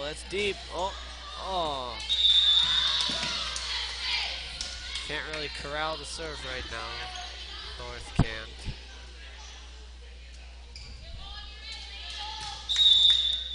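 Girls shout and call out to each other in a large echoing gym.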